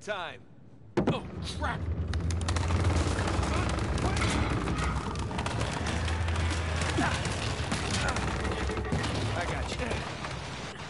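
Heavy stone rumbles and crashes as it collapses.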